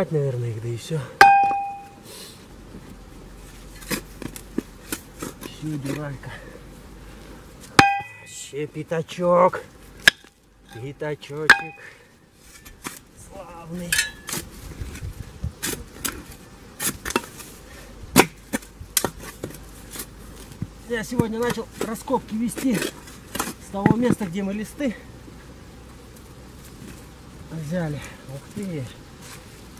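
A shovel scrapes and chops into dry soil.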